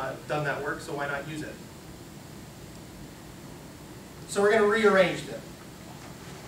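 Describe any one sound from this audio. A man speaks calmly to an audience, with pauses.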